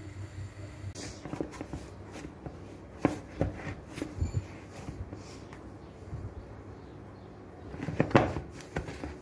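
A hand kneads and presses dough in a bowl with soft thumps.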